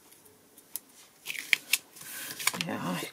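Hands press and rub tape onto cardboard.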